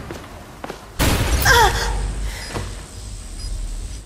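A loud blast bursts and rumbles.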